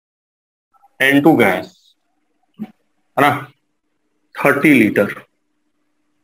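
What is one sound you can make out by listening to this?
A man speaks in short bursts, calmly and close by.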